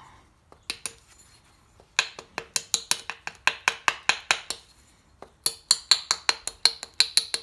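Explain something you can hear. A small hammer taps rapidly on a metal punch.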